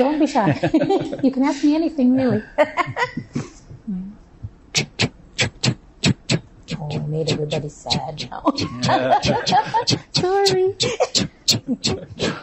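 An older woman laughs.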